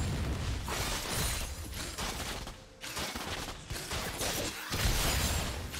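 Game spells whoosh and crackle in a fast fight.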